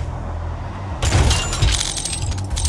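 A metal crate clicks and snaps open.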